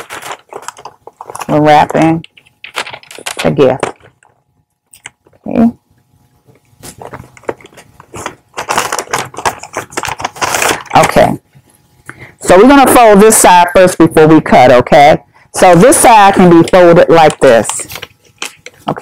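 Wrapping paper crinkles and rustles.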